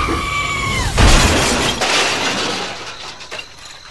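A toy train crashes and clatters onto its side.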